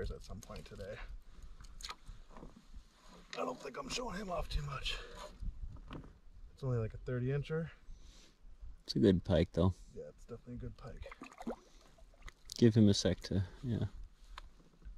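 A man talks calmly and with animation nearby.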